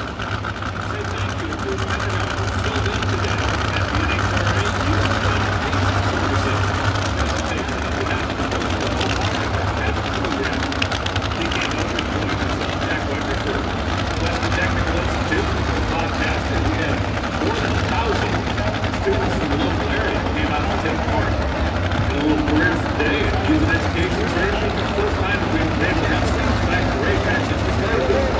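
A large outdoor crowd murmurs and chatters nearby.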